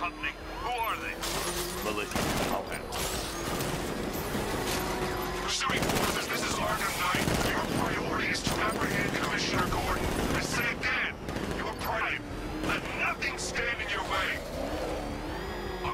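Gunfire and metal impacts crash in rapid bursts.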